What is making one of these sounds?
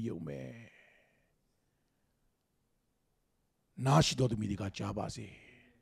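A man speaks with animation into a microphone, pausing between phrases.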